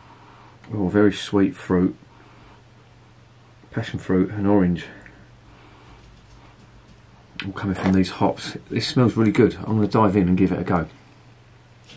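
A man speaks calmly and close to the microphone, in short bursts.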